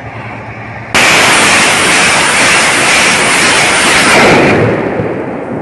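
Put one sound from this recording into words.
A huge blast of flame roars loudly with a rushing noise.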